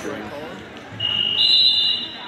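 A referee blows a whistle loudly.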